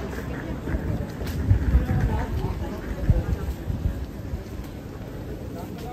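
A suitcase's wheels roll over paving stones.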